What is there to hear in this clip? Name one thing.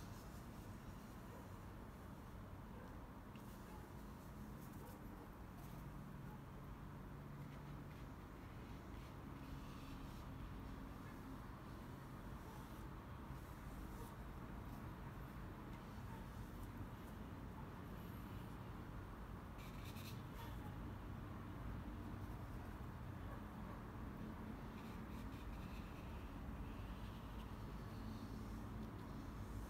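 A paintbrush swishes softly across paper.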